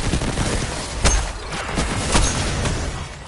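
A heavy gun booms with sharp blasts.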